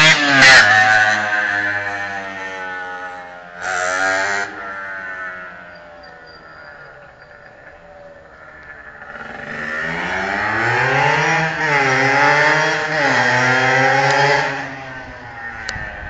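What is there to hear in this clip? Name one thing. A motorcycle engine whines in the distance, rising and falling as it circles.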